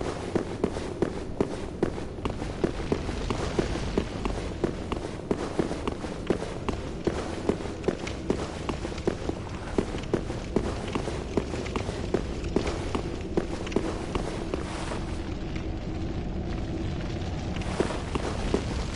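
Armoured footsteps clank steadily on stone.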